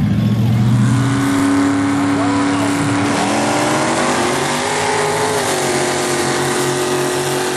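Truck engines rumble and rev in the distance.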